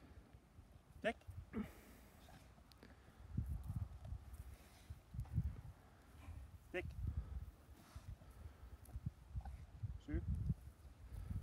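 A man speaks briefly and calmly to a dog nearby.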